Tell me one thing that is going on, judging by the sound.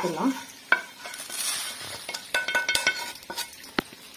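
Roasted spices rattle as they are tipped into a metal bowl.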